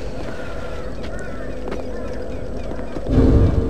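A weapon strikes with a sharp metallic clang.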